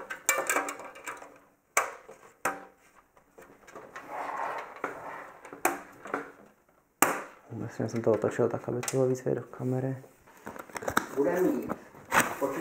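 Metal panels click and clatter as they are handled.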